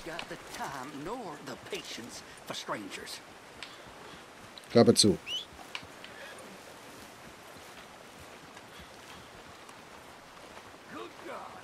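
Horse hooves clop slowly on a dirt path.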